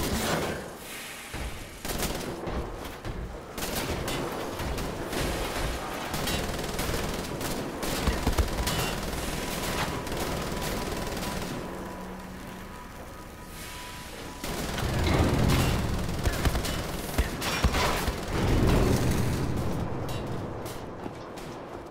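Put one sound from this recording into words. Footsteps clatter on hard metal floors.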